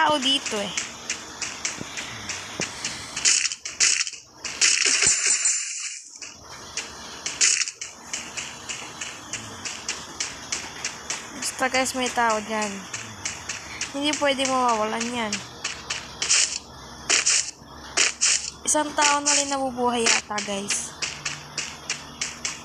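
Footsteps patter quickly over grass in a steady running rhythm.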